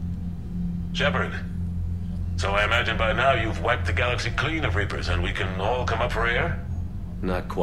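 A man speaks calmly through a radio-like transmission.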